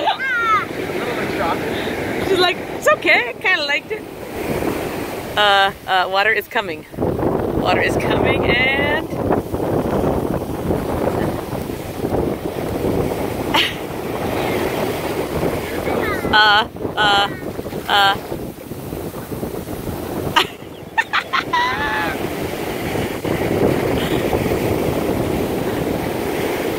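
Waves break and wash onto the shore nearby.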